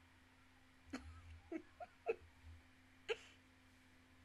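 A young woman laughs briefly, close to a microphone.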